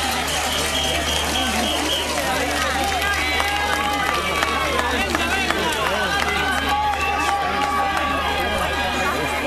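A large outdoor crowd of men and women chatters and calls out.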